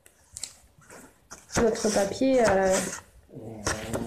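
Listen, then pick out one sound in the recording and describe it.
Stiff paper rustles as it is handled.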